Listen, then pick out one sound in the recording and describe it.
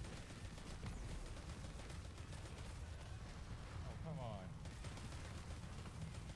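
Gunfire rattles and explosions boom in a video game.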